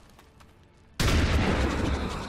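A rifle fires a loud burst.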